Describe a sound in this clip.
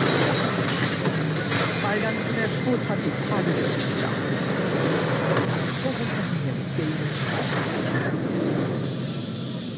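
Game spell effects crash and whoosh in a loud battle.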